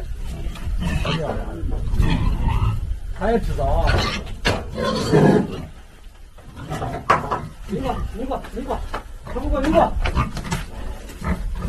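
A metal gate rattles and clanks.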